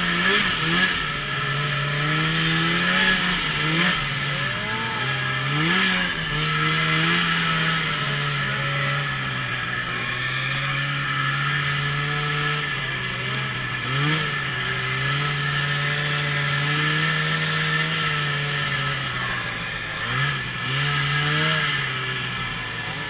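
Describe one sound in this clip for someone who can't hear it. A motorbike engine roars up close, revving up and down.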